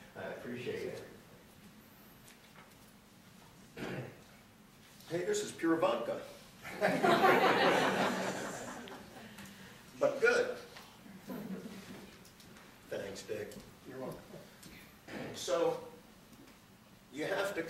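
A man speaks to an audience in a lively way.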